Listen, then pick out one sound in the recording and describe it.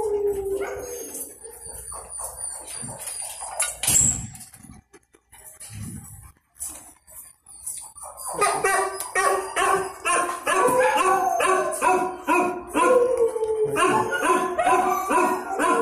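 A dog shuffles and rustles on a soft blanket.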